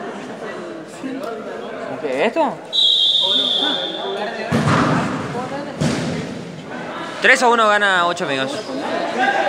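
Players shout to one another across an echoing indoor court.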